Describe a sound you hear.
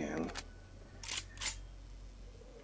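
A gun clicks and clatters as it is swapped for another.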